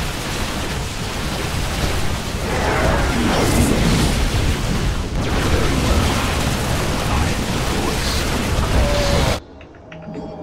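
Laser weapons zap and crackle in rapid bursts during a battle.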